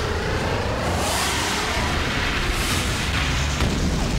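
A laser beam zaps and hums.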